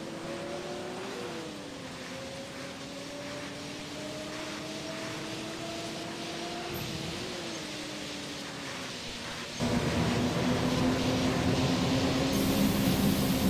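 A bus engine hums steadily, its pitch slowly rising and falling.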